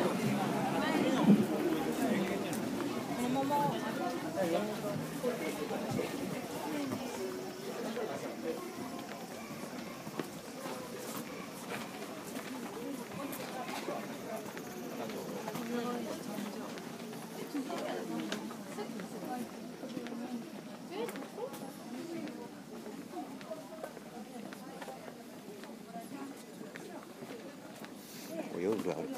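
Footsteps shuffle and tap on stone paving.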